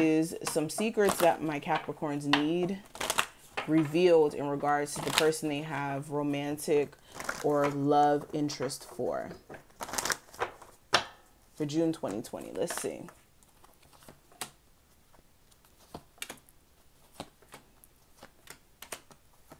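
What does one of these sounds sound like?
Playing cards riffle and flap as they are shuffled.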